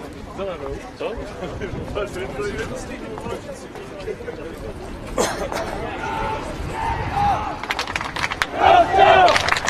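Footsteps shuffle on a paved path.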